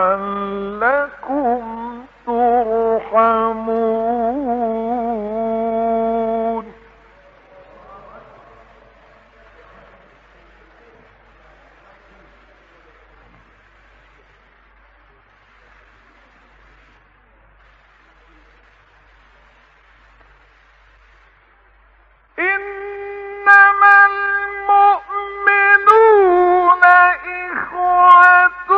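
An elderly man chants melodiously in a long, drawn-out voice, heard through an old recording.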